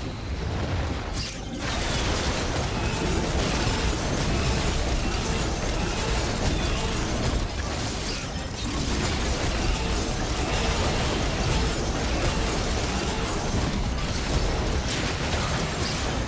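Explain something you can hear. Magic blasts and clashing hits burst rapidly in a fierce fight.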